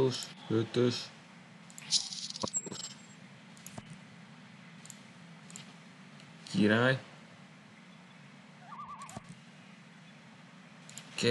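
Short electronic chimes and blips play as cards are moved.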